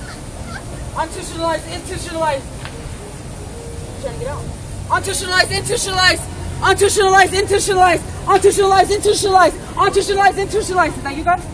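A young woman talks and laughs with animation nearby.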